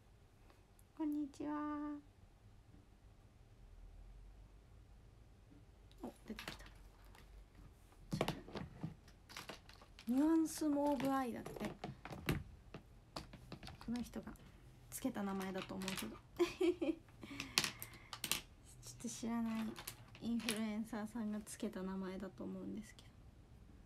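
A young woman speaks softly and casually, close by.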